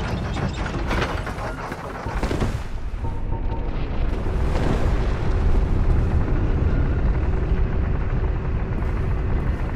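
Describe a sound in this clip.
A heavy weapon whooshes through the air in big swings.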